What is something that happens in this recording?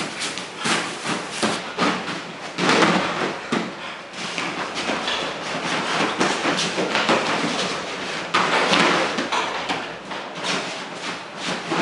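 Bare feet shuffle on a mat.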